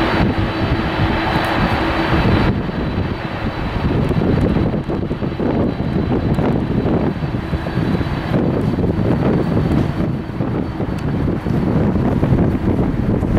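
A jet airliner's engines roar loudly as it speeds along a runway.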